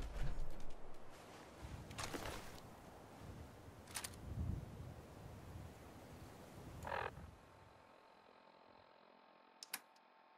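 Menu clicks tick softly.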